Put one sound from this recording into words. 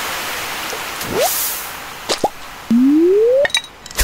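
A fish splashes out of the water.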